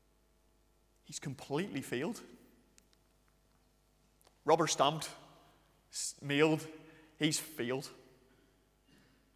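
A man speaks with animation, echoing in a large hall.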